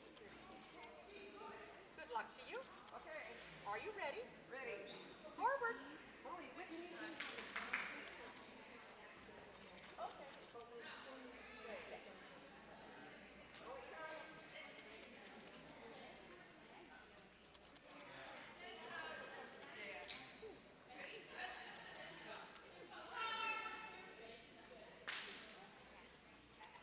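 A crowd of people murmurs in a large echoing hall.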